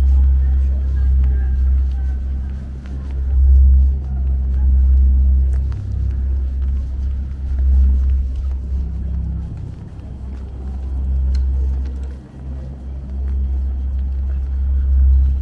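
Wind rumbles low and steady outdoors.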